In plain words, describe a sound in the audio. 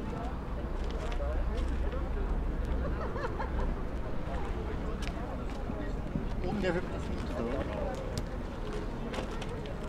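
People murmur and talk nearby.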